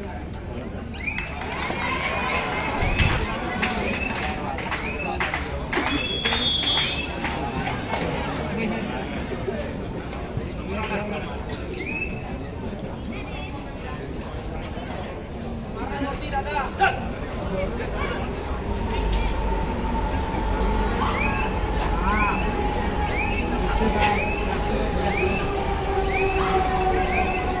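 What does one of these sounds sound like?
A young man chants rapidly and repeatedly.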